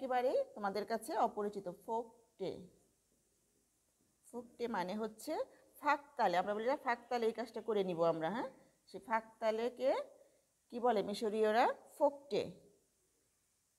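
A woman speaks clearly and steadily, close by.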